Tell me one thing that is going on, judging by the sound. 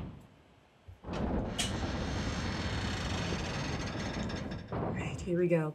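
Heavy doors rumble and grind as they swing open.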